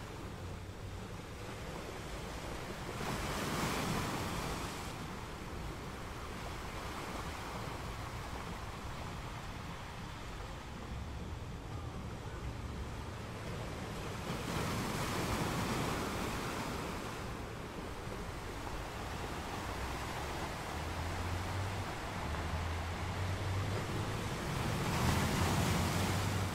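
Ocean waves roll in and crash onto rocks in surges.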